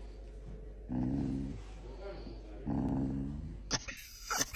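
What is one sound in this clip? A dog grumbles softly close by.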